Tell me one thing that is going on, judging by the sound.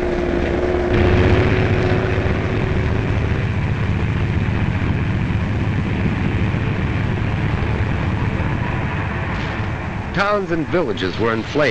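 Aircraft engines drone overhead.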